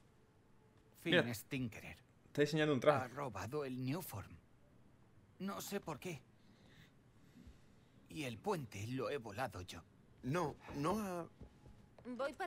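A young man speaks calmly.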